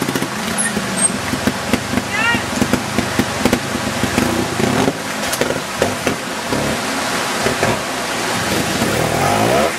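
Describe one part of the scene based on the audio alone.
Water splashes under motorcycle tyres.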